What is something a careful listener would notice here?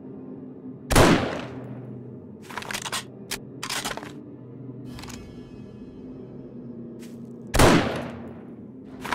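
A rifle fires two loud shots that echo away.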